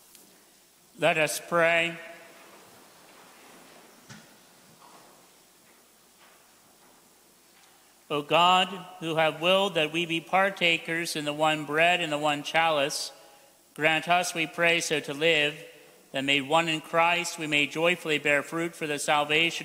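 A man chants loudly through a microphone in an echoing hall.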